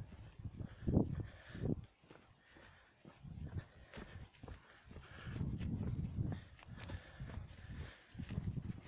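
Footsteps scuff along a paved path outdoors.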